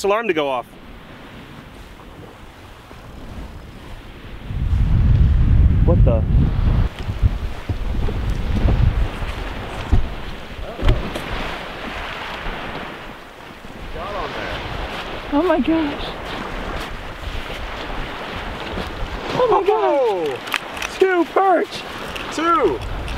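Small waves lap at the shore.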